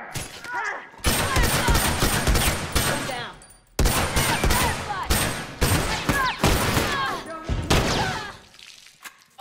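Rapid gunfire bursts loudly from an automatic rifle.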